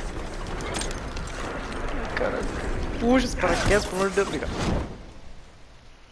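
A man grunts and shouts with effort.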